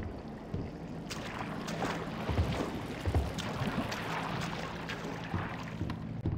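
Footsteps splash through shallow liquid.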